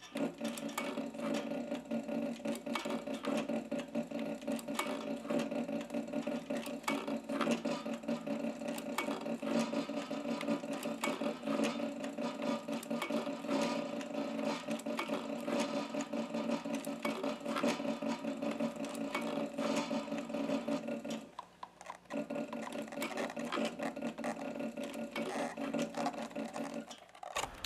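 A heavy-duty leather sewing machine stitches through thick leather with a fast, even hum and needle clatter.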